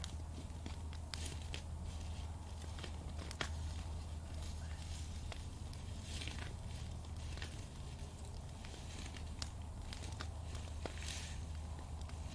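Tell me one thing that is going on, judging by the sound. Flames hiss and whoosh softly.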